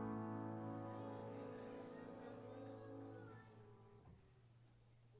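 A congregation sings along with music in a large echoing hall, then fades out.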